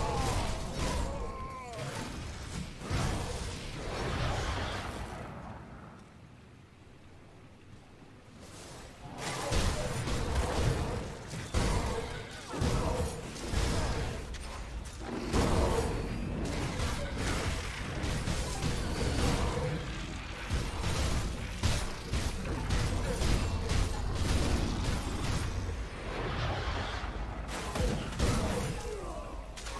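Spell blasts and weapon hits crash in a video game battle.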